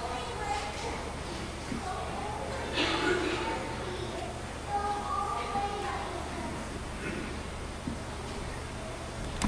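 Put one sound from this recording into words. A choir of young men and women sings together in an echoing hall.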